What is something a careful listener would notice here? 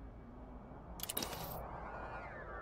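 A menu selection chimes with a sharp electronic tone.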